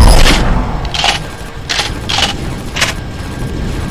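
Laser guns fire in short bursts.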